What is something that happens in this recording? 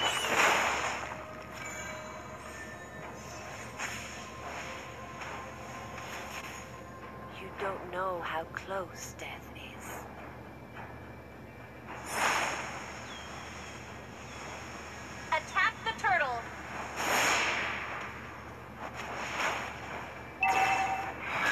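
Video game spell effects whoosh and chime.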